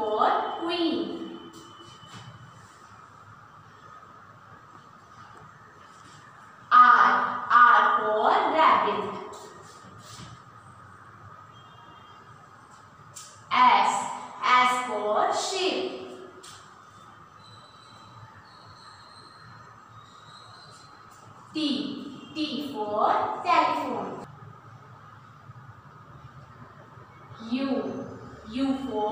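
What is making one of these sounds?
A young girl reads out letters loudly, close by, with pauses between.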